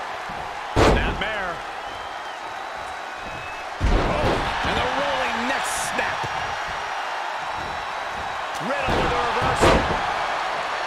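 Heavy bodies slam onto a wrestling ring mat with loud thuds.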